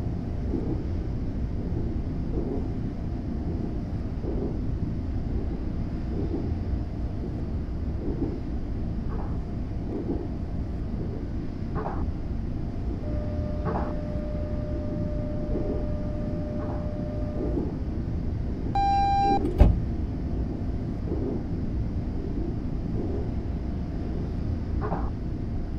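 Train wheels click over rail joints at a regular pace.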